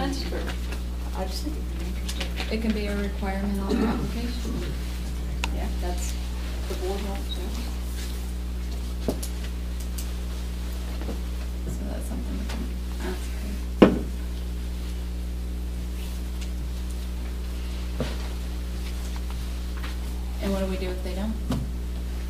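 A woman speaks calmly across a room.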